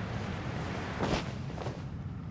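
Feet land on the ground with a soft thud.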